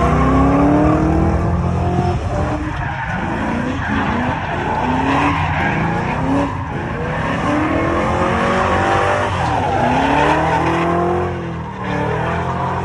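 Tyres squeal loudly on pavement.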